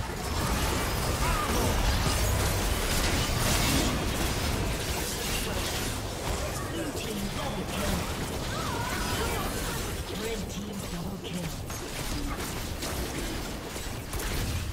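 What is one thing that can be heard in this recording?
Spell effects crackle and blast during a fast game fight.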